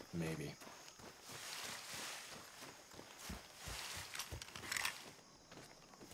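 Leaves and plants rustle as someone pushes through thick brush.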